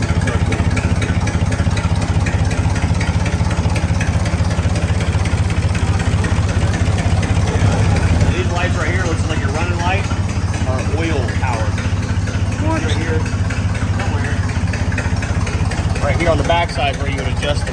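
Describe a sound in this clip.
An engine idles with a steady, rapid chugging throughout.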